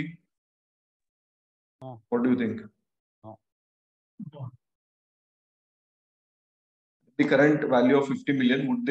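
A young man speaks calmly through an online call, with pauses.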